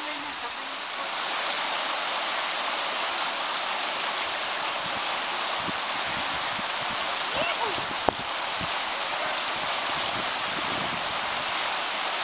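Whitewater rapids roar loudly outdoors.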